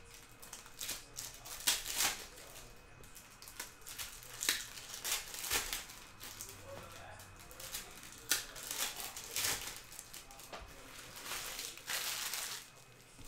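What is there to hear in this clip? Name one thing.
Foil wrappers crinkle and rustle as hands tear open packs.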